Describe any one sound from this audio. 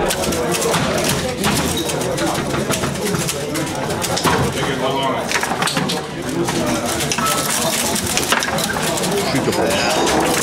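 A ball knocks against foosball figures and the table's walls.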